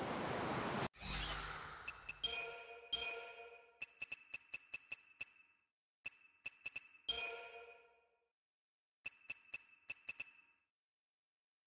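Short bright menu chimes ring one after another.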